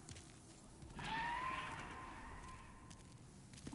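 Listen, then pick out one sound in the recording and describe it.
A large beast screeches overhead.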